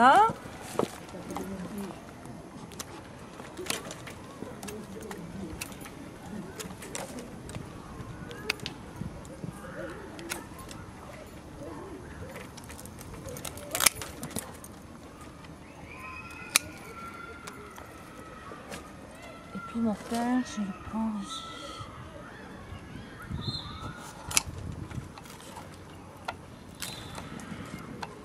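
Pruning shears snip through vine wood with sharp clicks.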